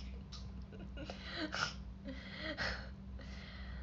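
A young woman giggles.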